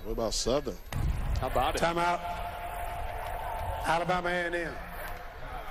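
A man announces over a stadium loudspeaker, his voice echoing.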